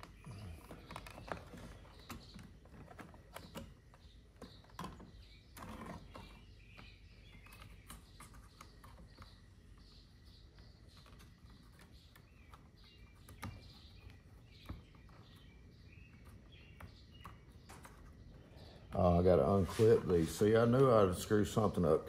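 Plastic parts click and rattle.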